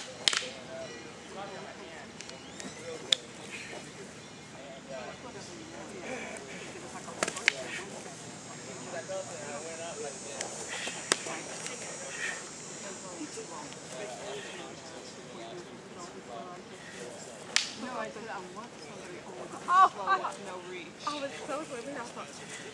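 Wooden practice swords clack sharply against each other.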